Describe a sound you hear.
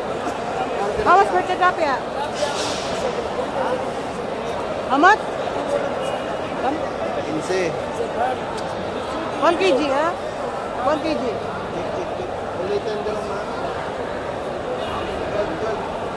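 Many people chatter in a busy, echoing hall.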